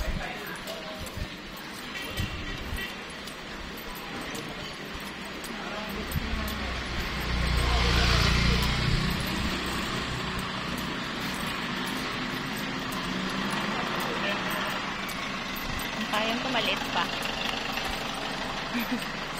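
Distant street traffic hums steadily outdoors.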